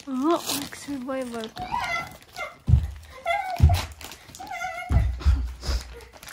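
Wrapping paper rustles and tears.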